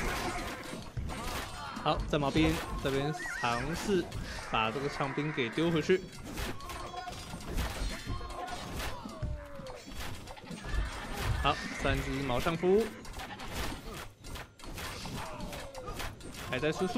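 Swords clash and soldiers fight in a small battle.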